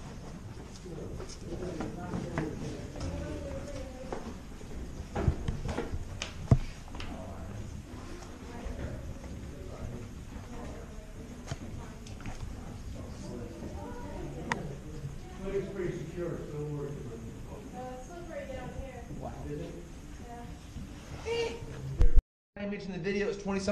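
Footsteps knock on a hard walkway.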